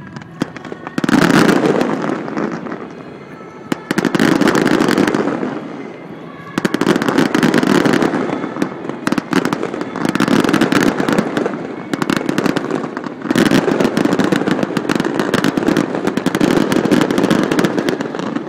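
Fireworks rumble and boom loudly in dense bursts.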